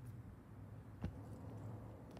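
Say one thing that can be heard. A heavy ball slaps into a man's hands.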